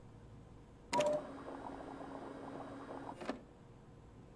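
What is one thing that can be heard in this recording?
A machine hums as liquid is pumped into a tube.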